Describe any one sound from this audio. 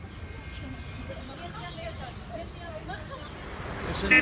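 Women chat quietly nearby as they walk past.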